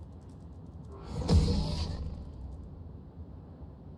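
A loud game alert sounds suddenly and fades.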